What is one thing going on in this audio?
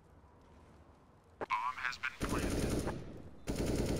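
A rifle clicks and rattles as it is handled.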